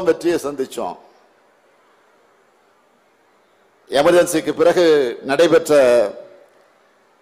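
A man speaks forcefully into a microphone over loudspeakers, outdoors.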